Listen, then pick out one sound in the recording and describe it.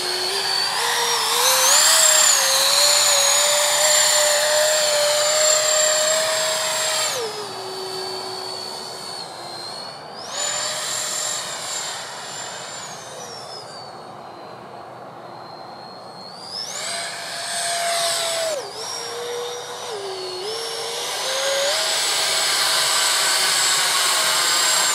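A model jet's engine whines loudly, rising and falling in pitch as it swoops past.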